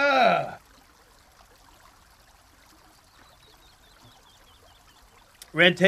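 A man gulps a drink from a plastic bottle.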